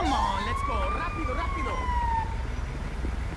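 A siren wails nearby.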